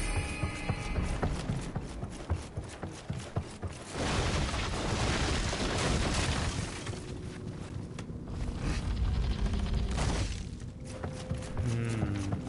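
Footsteps thud on wooden stairs and floorboards.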